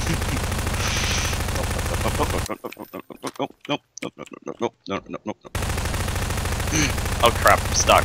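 A submachine gun fires rapid bursts.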